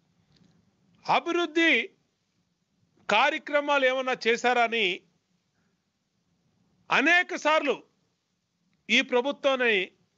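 A middle-aged man speaks firmly and emphatically into a close microphone, in short bursts with pauses.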